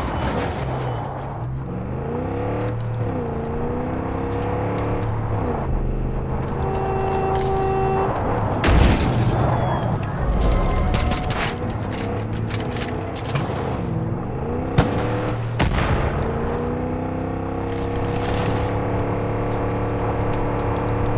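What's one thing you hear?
Tyres crunch over a gravel track.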